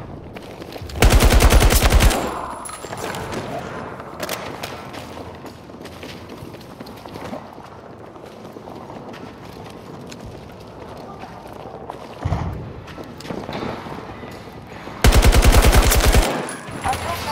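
A rifle fires rapid bursts of gunfire at close range.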